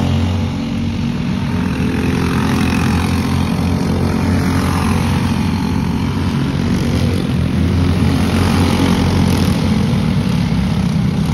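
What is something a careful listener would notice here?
Small kart engines buzz and whine as karts race past.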